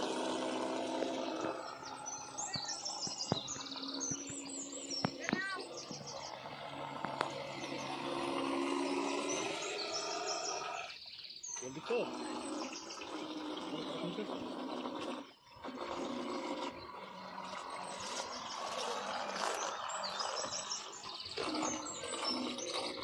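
A small motor whines as a toy boat speeds across the water.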